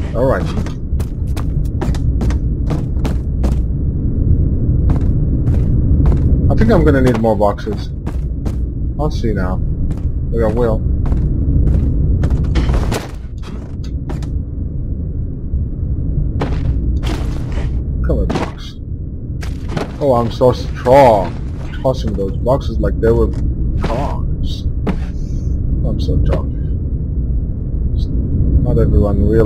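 Footsteps thud slowly across wooden floorboards.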